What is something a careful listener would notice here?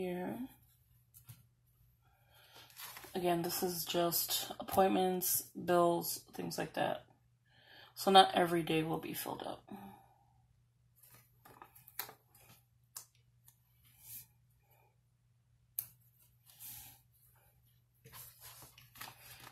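Paper pages rustle and crinkle as they are handled.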